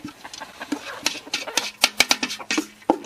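Chickens peck at rice on the ground with quick little taps.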